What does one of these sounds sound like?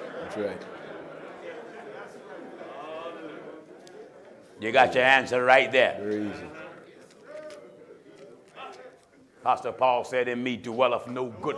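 A man preaches with emphasis into a microphone.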